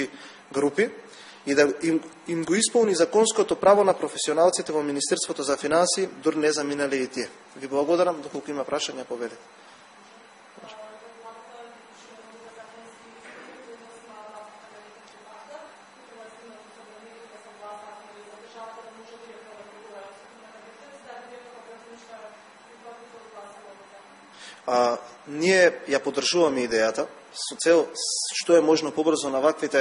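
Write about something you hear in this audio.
A young man speaks steadily into a microphone, pausing for a while in the middle.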